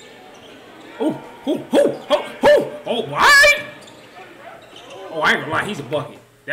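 A young man shouts and exclaims excitedly, close to a microphone.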